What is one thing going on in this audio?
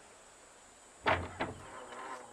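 A wooden door thuds open.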